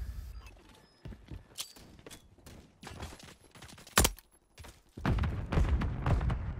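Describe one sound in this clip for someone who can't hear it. Rifle gunfire cracks in quick bursts.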